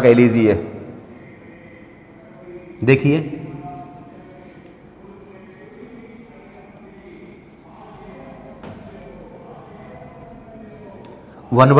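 A marker squeaks as it writes on a board.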